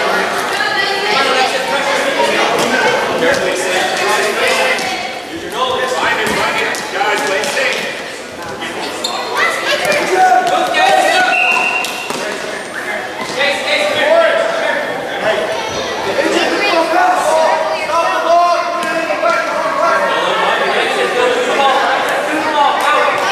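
A crowd of parents and children shouts and cheers in an echoing hall.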